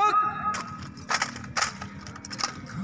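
Rifles clack sharply as soldiers handle them in drill.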